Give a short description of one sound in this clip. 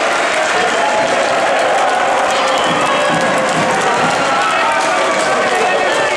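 A crowd cheers and claps in a large echoing hall.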